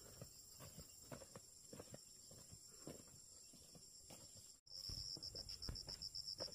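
Boots crunch footsteps on loose dirt.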